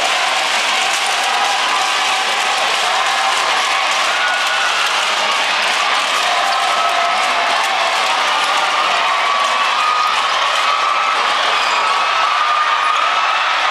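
A large crowd cheers and chants loudly in an echoing arena.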